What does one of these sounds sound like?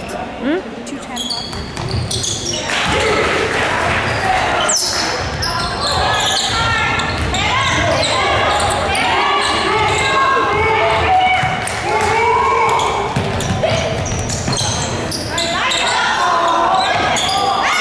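Sneakers squeak sharply on a hardwood floor in a large echoing gym.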